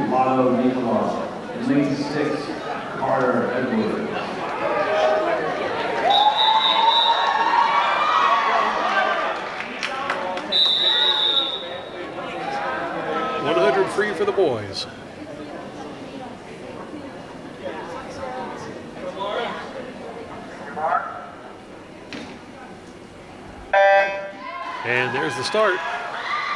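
A crowd of young people chatters and cheers in a large echoing hall.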